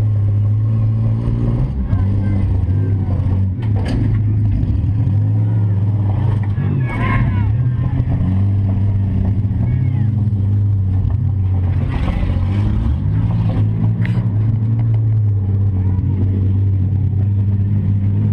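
A car engine roars and revs up and down from inside the car.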